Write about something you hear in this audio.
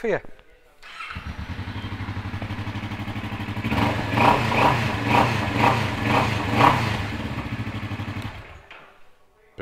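A motorcycle engine idles with a deep, steady rumble.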